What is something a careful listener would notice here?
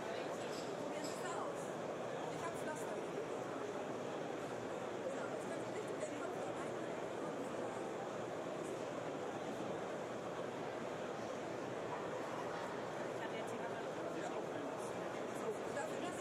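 A crowd murmurs steadily in a large, echoing hall.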